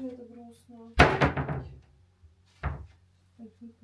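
A wooden cupboard door bangs shut.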